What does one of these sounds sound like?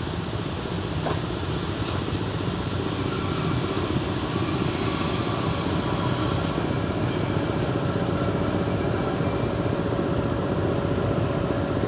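An electric locomotive approaches with a steady, growing rumble.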